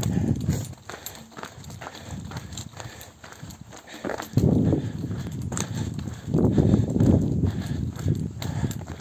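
Footsteps crunch steadily on a gravel track.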